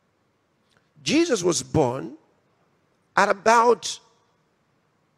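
A man preaches with animation into a microphone.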